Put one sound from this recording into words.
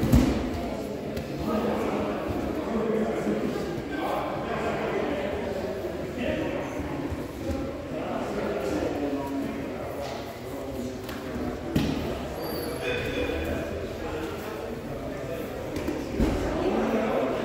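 Many people talk at once across a large echoing hall.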